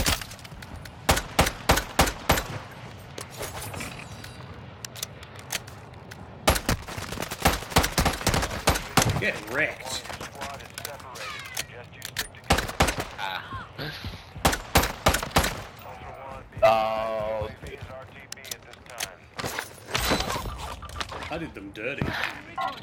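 A pistol fires single sharp shots.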